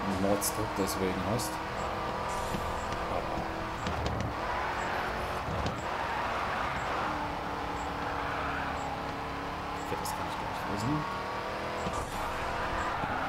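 A car engine roars at high revs.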